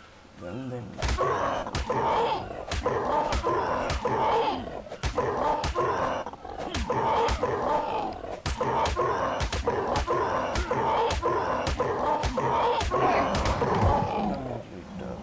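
Punches thud repeatedly against a creature's body.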